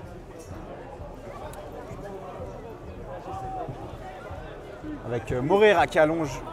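Spectators murmur and chatter quietly outdoors.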